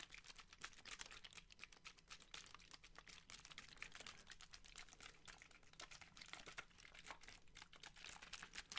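Plastic water bottles crinkle and crackle close to a microphone.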